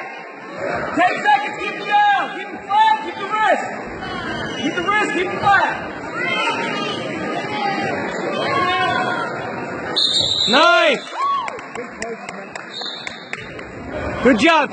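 A crowd of spectators shouts and cheers excitedly in a large echoing hall.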